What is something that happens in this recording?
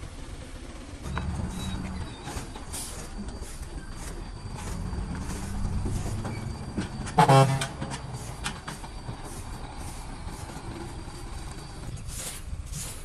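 A heavy truck engine rumbles as the truck drives slowly away.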